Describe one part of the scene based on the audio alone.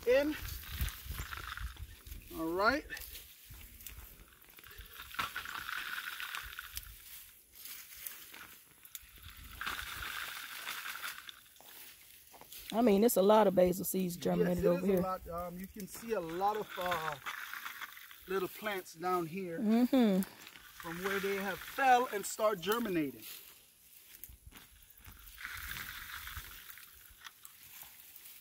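Leafy plants rustle as stems are picked by hand.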